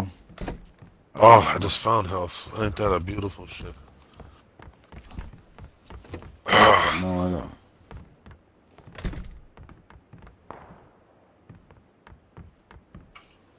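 Footsteps thud on wooden stairs and floors.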